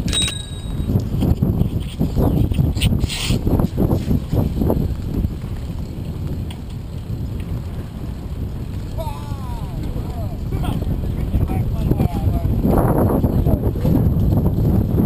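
Wind buffets the microphone on a bicycle riding along a paved path.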